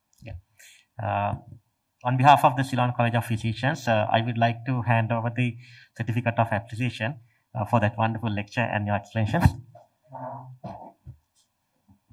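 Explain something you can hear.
A man speaks calmly through a microphone.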